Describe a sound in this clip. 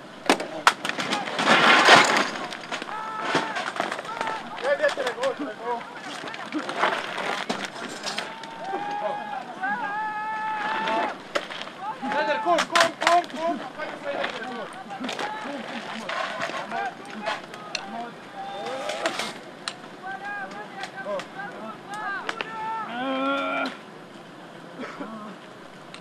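Men shout urgently outdoors.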